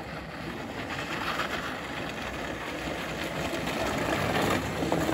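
A small go-kart engine buzzes loudly as it drives around.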